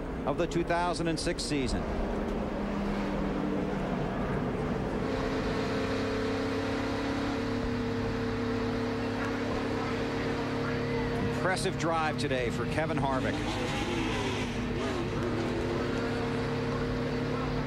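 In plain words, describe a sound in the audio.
A race car engine drones loudly and steadily.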